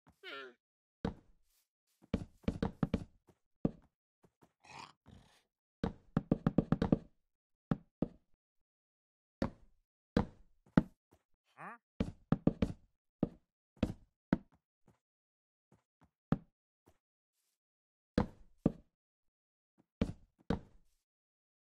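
Blocks thud and knock in quick bursts as they are placed.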